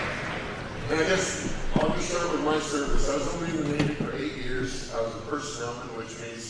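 A middle-aged man speaks with feeling into a microphone over loudspeakers.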